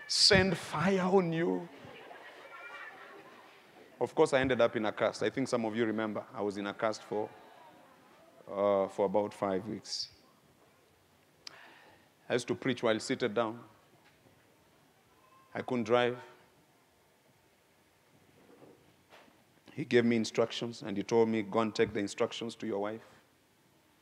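A man speaks with animation through a microphone, in short bursts with pauses, in a large echoing hall.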